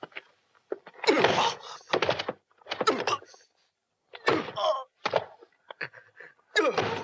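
A man laughs loudly and wildly.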